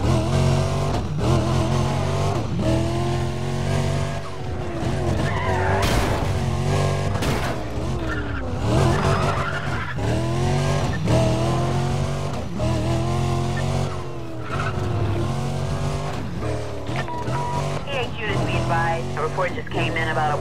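A sports car engine roars at high revs, rising and falling with gear changes.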